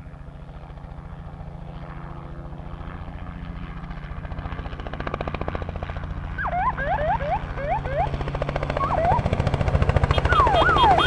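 A helicopter approaches, its rotor thumping louder and louder.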